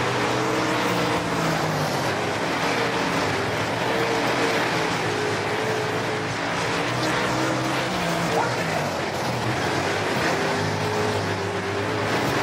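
Tyres rumble and skid on dirt.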